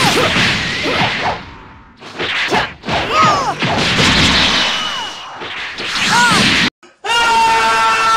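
Punches and kicks thud in quick bursts.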